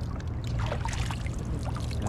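Water drips and splashes from hands onto rocks.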